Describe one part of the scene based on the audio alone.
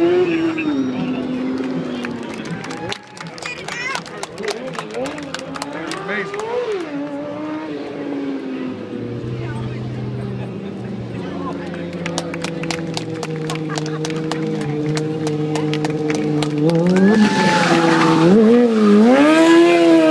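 A motorcycle engine hums and revs loudly outdoors.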